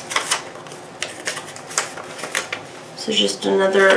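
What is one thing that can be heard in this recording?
Paper crackles and rustles as it is unfolded.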